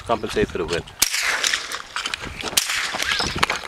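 A rifle fires sharp, loud shots outdoors.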